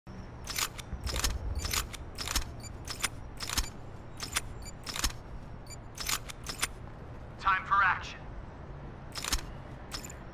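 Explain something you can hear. Short game menu clicks tick one after another.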